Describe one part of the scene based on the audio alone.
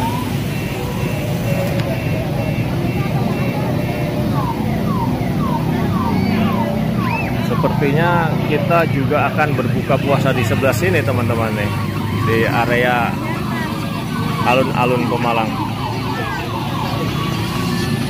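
A small electric motor whirs as a toy car drives.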